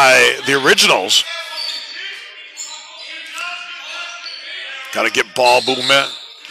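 A crowd murmurs and calls out in an echoing hall.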